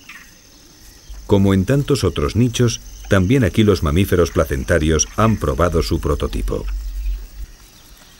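A small animal chews and nibbles on food.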